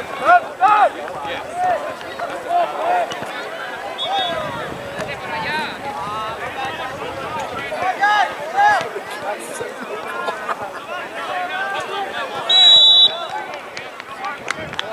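Young players shout and call to each other outdoors in the open.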